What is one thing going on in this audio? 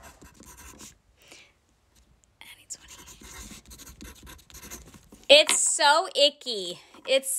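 A woman speaks softly and close by, then her voice rises sharply in pitch.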